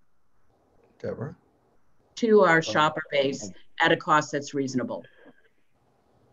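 A middle-aged woman speaks calmly over an online call.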